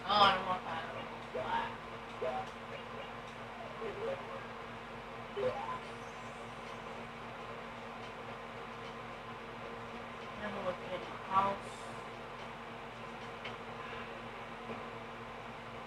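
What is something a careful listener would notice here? Short chirping video game sound effects play from a television speaker.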